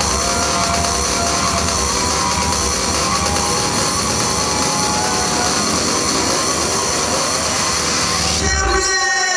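Loud electronic dance music with a heavy beat plays over a sound system.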